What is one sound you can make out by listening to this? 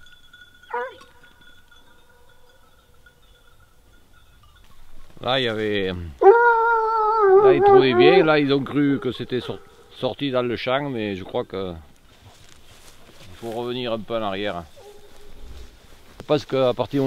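Hounds bay and yelp outdoors.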